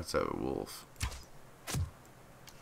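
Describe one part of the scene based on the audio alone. A bowstring snaps as an arrow is loosed.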